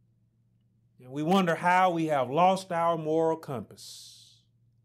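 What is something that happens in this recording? A man speaks loudly and expressively into a microphone, in a slightly echoing room.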